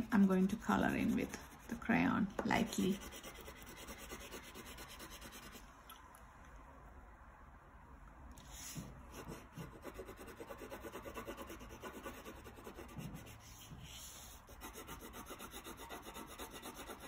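A crayon scratches and rubs softly on paper.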